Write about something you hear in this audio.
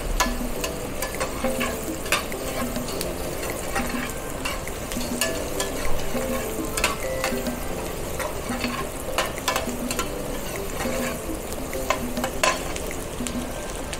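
A metal spoon scrapes and taps against a pan.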